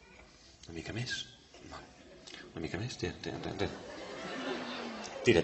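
A man speaks calmly and clearly nearby.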